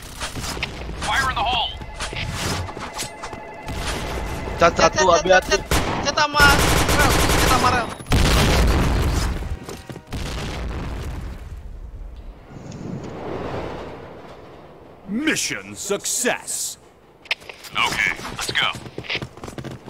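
A young woman talks with animation into a headset microphone.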